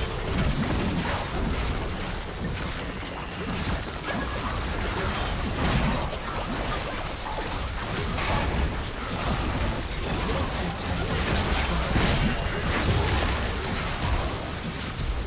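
Game spells and attacks crackle and burst rapidly in a busy battle.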